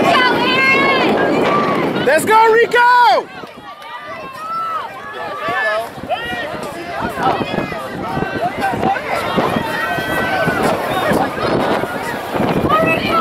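A crowd of spectators cheers and shouts nearby outdoors.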